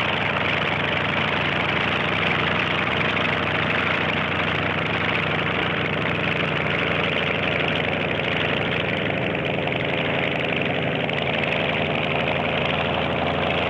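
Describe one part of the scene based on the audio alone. A helicopter's rotor thumps steadily as it flies closer.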